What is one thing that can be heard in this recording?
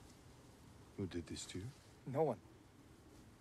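An older man asks a question in a low, concerned voice.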